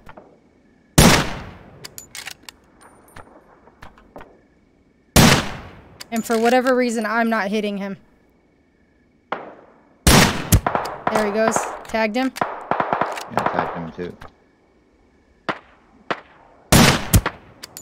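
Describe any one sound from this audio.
Rifle shots crack loudly, one at a time, with a ringing echo.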